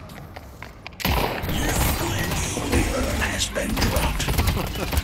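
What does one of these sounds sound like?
A heavy machine gun fires in a rapid, loud burst.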